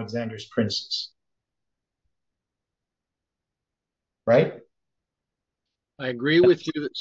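An older man speaks calmly and thoughtfully into a close microphone, with pauses.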